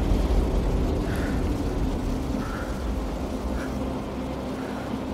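A man blows warm breath into his cupped hands.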